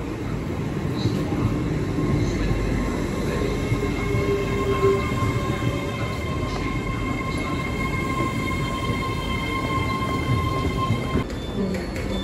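Train brakes squeal in high steady tones as the train slows.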